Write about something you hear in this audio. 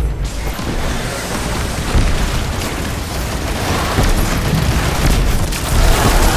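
Magical energy blasts whoosh and burst.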